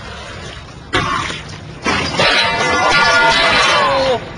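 A skater slams down hard onto concrete.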